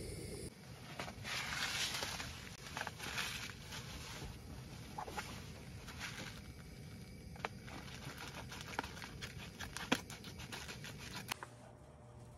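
A foil food packet crinkles and rustles in a hand.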